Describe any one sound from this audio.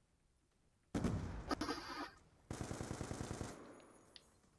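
A rifle fires rapid bursts, loud and close.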